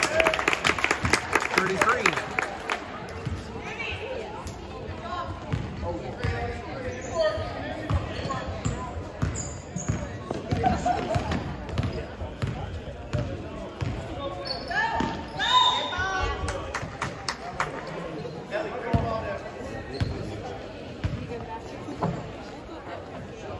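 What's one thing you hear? Basketballs bounce on a wooden gym floor with echoing thumps.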